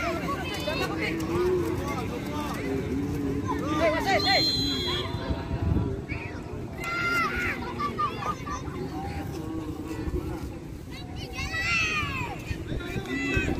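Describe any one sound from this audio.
Young players shout and call out to each other outdoors.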